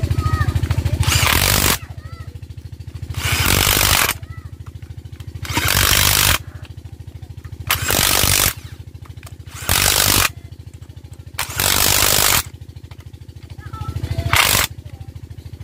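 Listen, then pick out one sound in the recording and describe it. A cordless impact driver whirs loudly in repeated short bursts.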